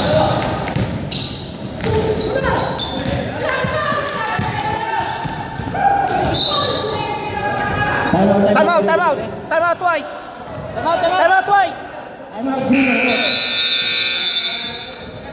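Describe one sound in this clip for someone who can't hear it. Men shout to each other in a large echoing gym.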